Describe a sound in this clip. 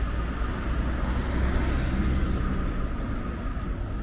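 A car drives slowly past nearby.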